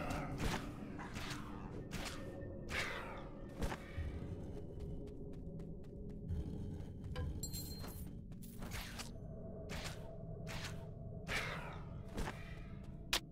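Sword blows clang and thud against undead foes.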